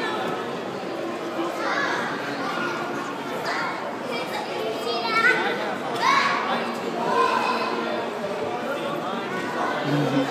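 Young children chatter and squeal nearby.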